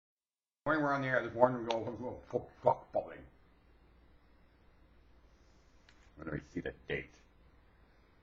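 An elderly man speaks calmly and close up.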